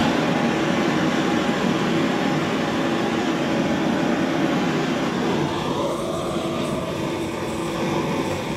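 A potter's wheel whirs steadily as it spins.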